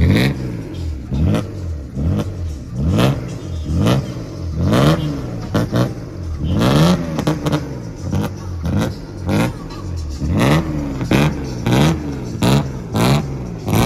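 Tyres squeal on paving as a car spins.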